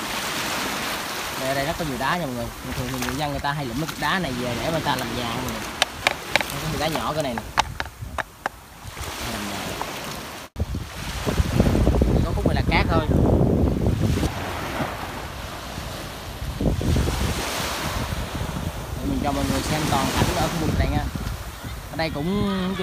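Small waves wash and splash gently onto a shore.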